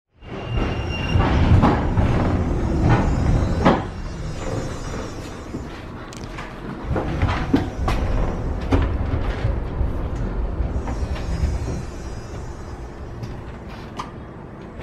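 A tram's wheels clatter and squeak on the rails.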